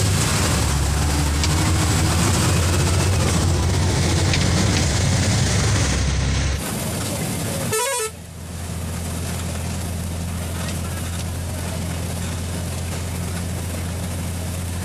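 A small engine drones steadily while riding along a road.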